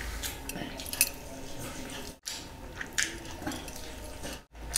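A man bites into meat with a crunch.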